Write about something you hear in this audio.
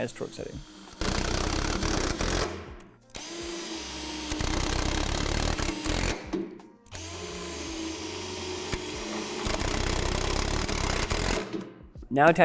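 A power drill whirs in bursts, driving in bolts.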